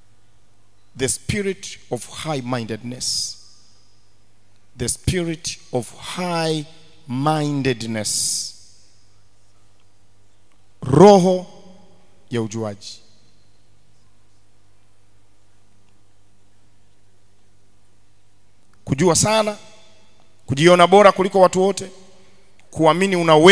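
A man preaches with animation into a microphone, through loudspeakers, with long pauses.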